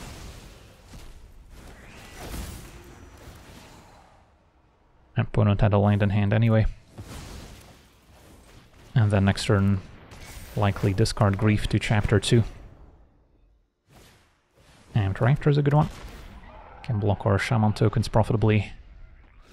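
Magical whooshes and shimmering chimes play.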